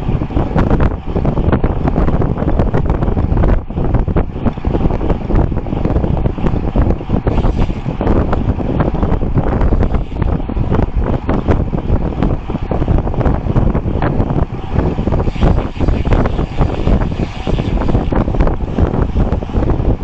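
Strong wind rushes and buffets loudly past a fast-moving bicycle.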